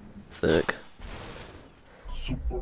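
Glassy shards shatter and scatter.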